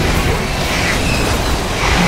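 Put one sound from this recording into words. Flames burst and roar with a loud whoosh.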